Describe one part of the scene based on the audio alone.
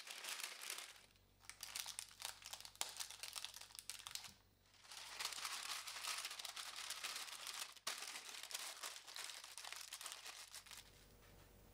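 Tape crackles and peels as it is pressed down by hand.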